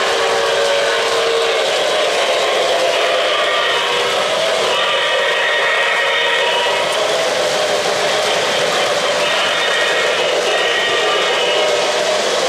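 An O-gauge model train rumbles along a three-rail track.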